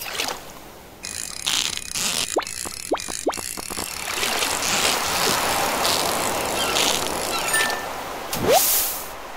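A fishing reel whirs as a line is reeled in.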